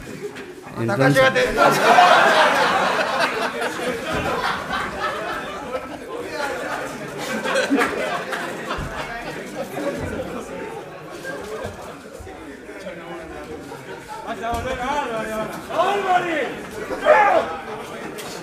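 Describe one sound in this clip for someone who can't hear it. Several men shout and laugh in a noisy commotion.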